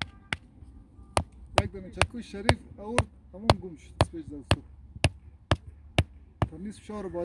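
A mallet strikes a tent peg into the ground in quick, sharp knocks.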